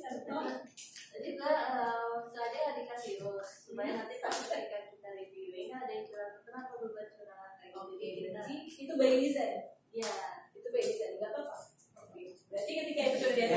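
A woman speaks clearly and steadily to a group.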